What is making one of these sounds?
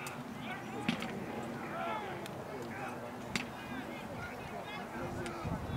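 Wooden weapons clack against each other.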